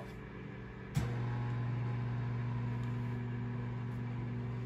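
Low music plays steadily from a laptop speaker.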